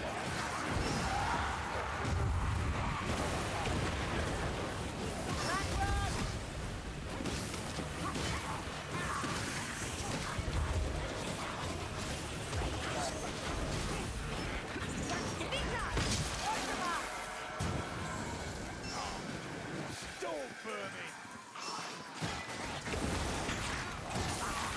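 Weapons clash and thud against creatures in a rapid melee.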